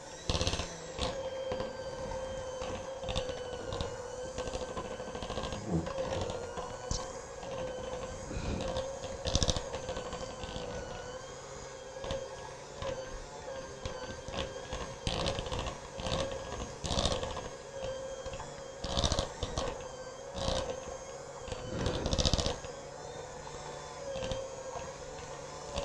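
Mixer beaters knock and scrape against a bowl.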